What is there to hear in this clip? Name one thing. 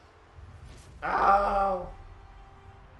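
A loud explosion booms as a goal is scored.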